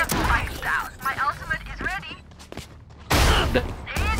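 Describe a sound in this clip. Rapid gunfire rattles at close range.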